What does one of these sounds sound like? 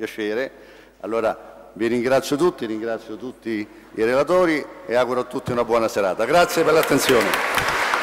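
A middle-aged man speaks with animation into a microphone in an echoing hall.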